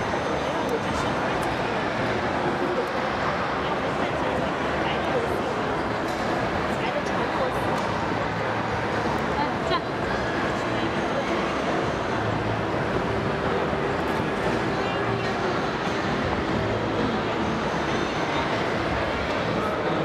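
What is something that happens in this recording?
Small plastic and metal parts click and rattle in a person's hands.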